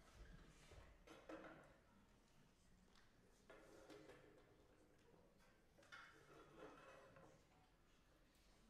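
A man speaks calmly to an audience in a large echoing hall.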